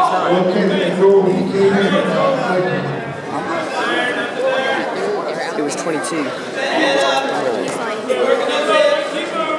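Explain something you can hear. Wrestlers thump and scuffle on a mat.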